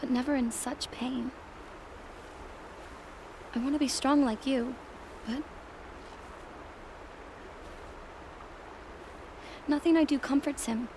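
A young woman speaks softly and emotionally, with pauses.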